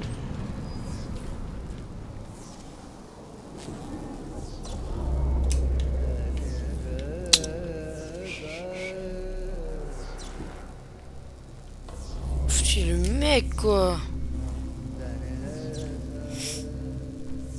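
Footsteps scuff across a hard floor.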